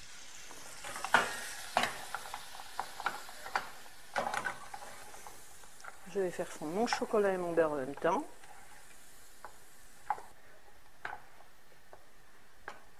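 A wooden spoon knocks and scrapes against a metal pan while stirring.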